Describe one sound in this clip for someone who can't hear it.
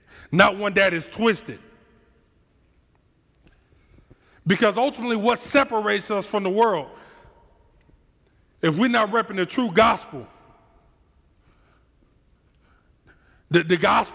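A man speaks calmly through a headset microphone in a reverberant hall, with pauses between phrases.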